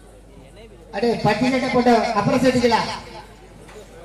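A man speaks loudly and briskly close by.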